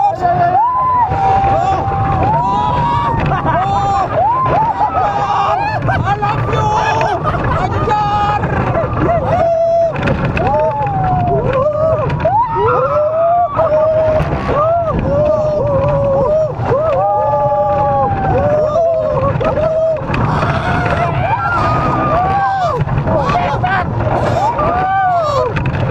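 Wind roars past loudly.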